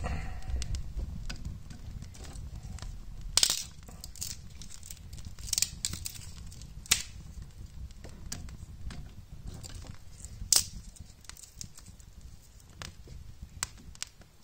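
Kindling sticks clatter as a hand moves them.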